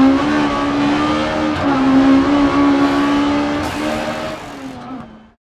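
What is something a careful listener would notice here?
A rally car engine roars at high revs, dropping briefly at each gear change, then fades away.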